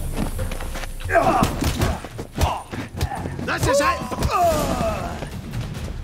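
A man shouts at close range.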